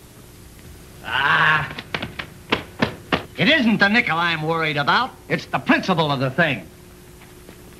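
A man speaks excitedly in a high voice.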